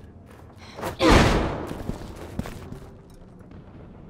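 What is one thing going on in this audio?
A heavy wooden door bursts open with a loud crash.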